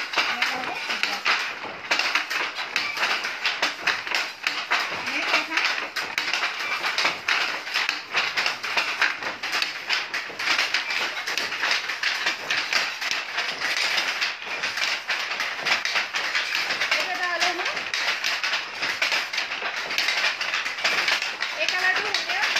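Fabric rustles and flaps as cloth is shaken and unfolded.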